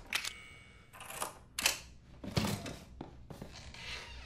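A wooden hatch creaks and thumps open.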